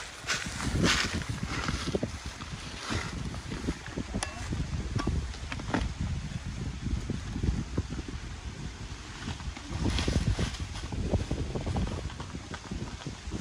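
Wind blows outdoors with low rumbling gusts.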